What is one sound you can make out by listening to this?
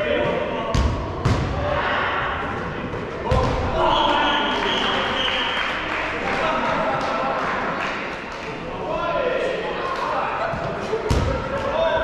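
Players shout and call out to each other in a large echoing indoor hall.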